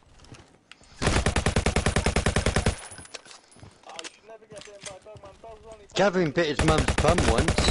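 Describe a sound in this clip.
A rifle fires rapid automatic bursts at close range.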